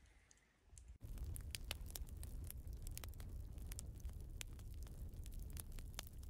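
A small fire crackles and pops in a stove.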